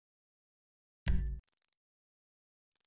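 A game menu whooshes as it opens.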